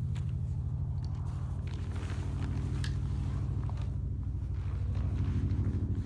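A plastic cover rustles as it is pulled off.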